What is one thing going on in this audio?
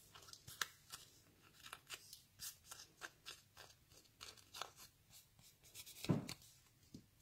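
Stiff paper rustles and crinkles softly as it is handled.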